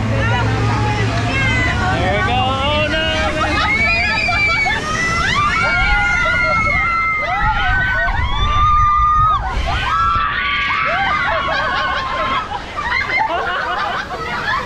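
A crowd of young riders shouts and screams with excitement close by.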